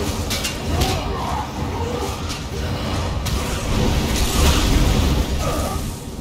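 Weapons strike with sharp hits.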